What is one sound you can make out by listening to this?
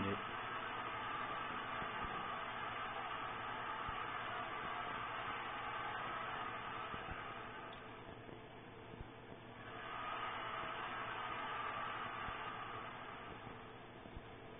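Game music plays through a television speaker, heard from across a room.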